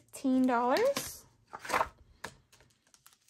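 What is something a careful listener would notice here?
Binder pages flip over.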